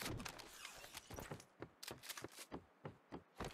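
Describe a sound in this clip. Quick footsteps thud across a wooden floor.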